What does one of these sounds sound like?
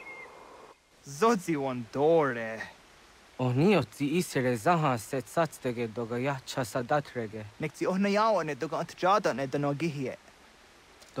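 A man answers with animation, close by.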